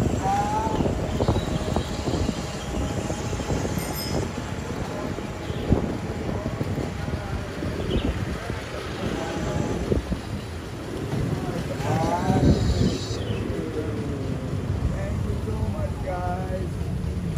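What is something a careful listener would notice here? Scooter engines idle and rumble close by.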